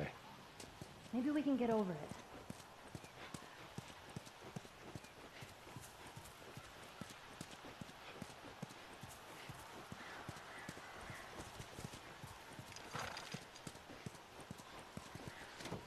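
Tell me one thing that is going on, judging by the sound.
Footsteps pad over grass and pavement.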